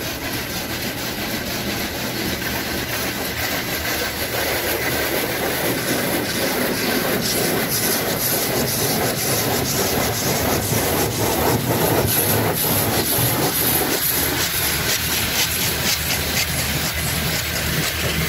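Brushes of a car wash scrub and thump against the car.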